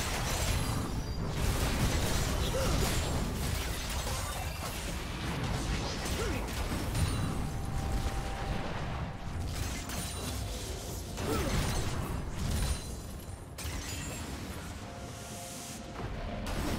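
Game characters strike each other with sharp hits.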